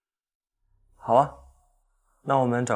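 A young woman answers briefly and softly.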